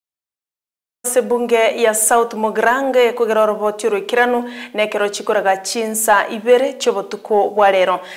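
A woman reads out the news clearly into a microphone, close by.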